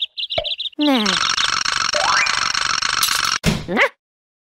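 A bright, tinkling chime rings out.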